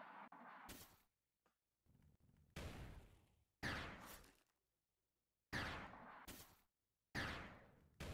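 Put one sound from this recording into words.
A gun fires loud shots, each followed by a fading ring.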